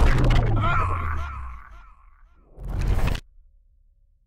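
A blade squelches wetly through flesh.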